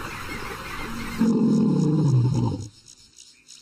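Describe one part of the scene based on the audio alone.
A lion roars loudly.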